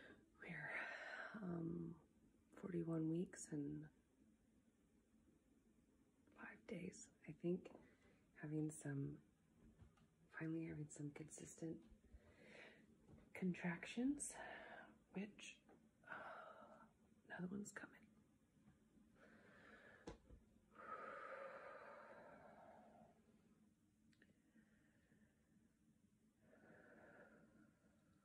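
A young woman talks calmly and close by, with pauses.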